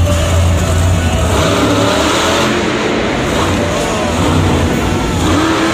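Metal crunches as a monster truck drives over wrecked cars.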